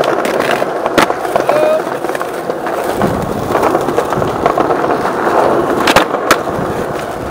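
Skateboard wheels clack over joints in the paving.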